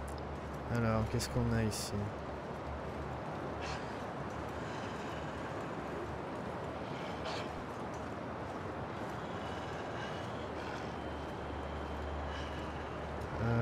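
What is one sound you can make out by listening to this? Boots crunch on snow.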